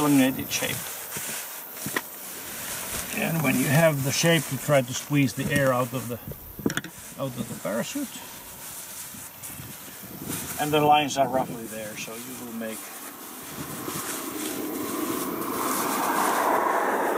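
Nylon fabric rustles and crinkles as it is crumpled.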